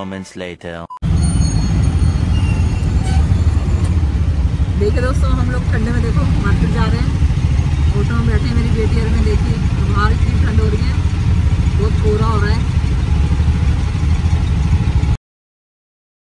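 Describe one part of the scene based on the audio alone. An auto-rickshaw engine rumbles steadily.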